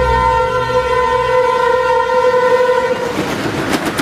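A train horn blares loudly and steadily.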